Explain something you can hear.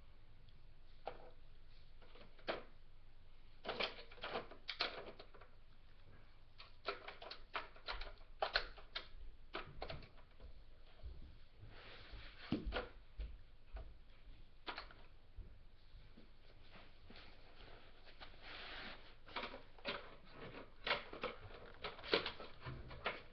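Plastic toy pieces click and clatter as they are handled.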